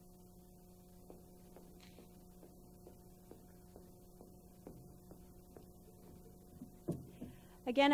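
Footsteps tap across a stage.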